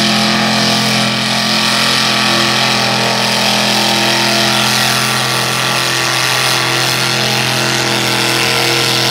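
Spinning tyres churn and spray wet mud.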